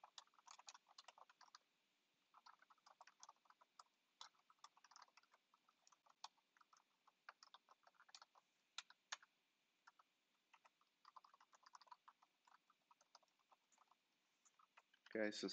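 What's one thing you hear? Keys on a keyboard click rapidly as someone types.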